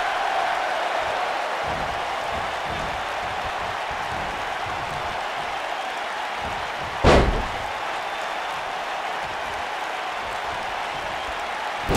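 A large crowd roars steadily in an arena.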